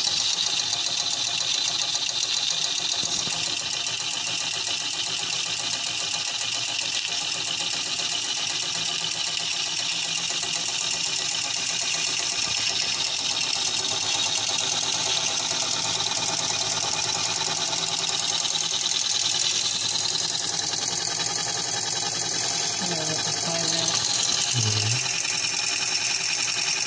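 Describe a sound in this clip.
A small engine whirs and ticks quickly and steadily.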